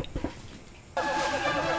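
A gramophone plays a scratchy old tune.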